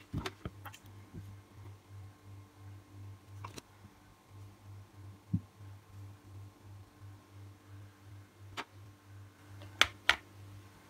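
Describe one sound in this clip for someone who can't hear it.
A small plastic cap taps lightly against a fingernail.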